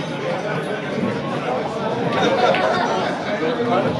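A cue stick strikes a billiard ball with a sharp click.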